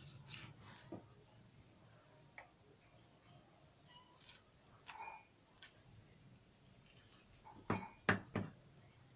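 A knife chops and taps on a wooden cutting board.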